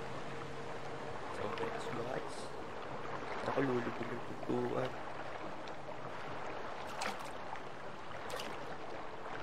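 Wind blows steadily over open water.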